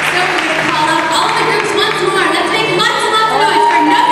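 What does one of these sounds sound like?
A young woman speaks through a microphone.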